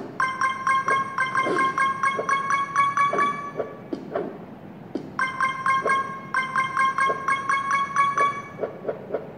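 A mobile game plays quick bright chimes as coins are collected.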